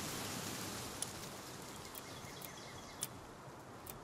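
A soft menu click sounds.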